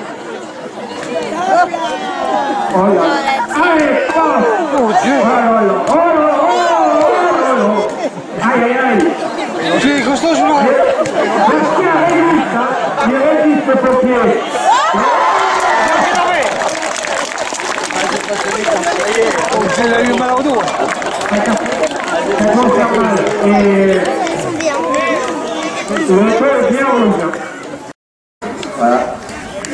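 A crowd of men shouts and cheers loudly outdoors.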